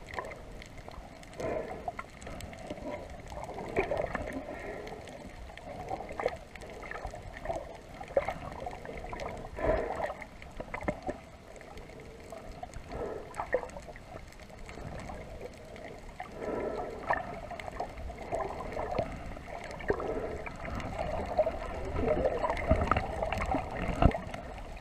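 Water bubbles and rushes in muffled bursts underwater.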